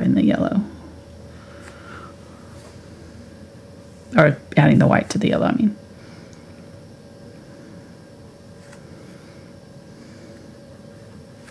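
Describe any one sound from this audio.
A paintbrush strokes softly across a canvas.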